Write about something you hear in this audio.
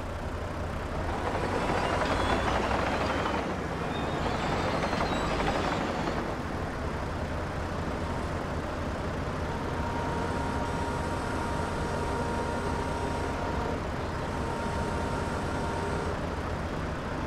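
A hydraulic arm whines as it moves.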